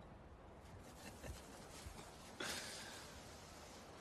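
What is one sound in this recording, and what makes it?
A man laughs softly nearby.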